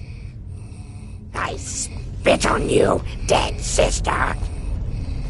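An old woman shrieks angrily.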